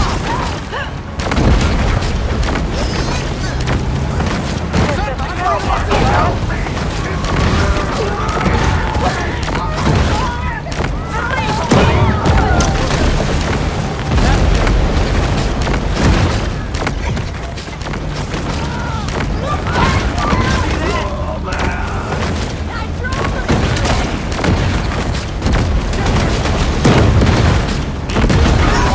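Water splashes and churns as a shark swims fast.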